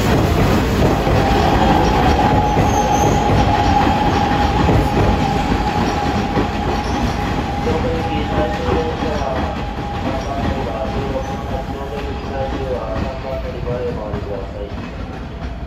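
Train wheels squeal on the rails.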